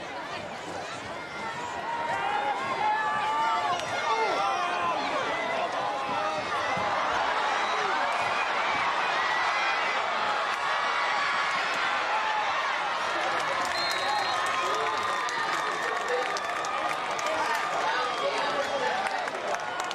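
A large outdoor crowd cheers and shouts, growing louder from the second second on.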